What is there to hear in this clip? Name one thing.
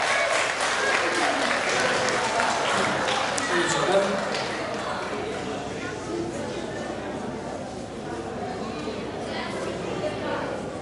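A middle-aged man speaks calmly into a microphone over a loudspeaker in an echoing hall.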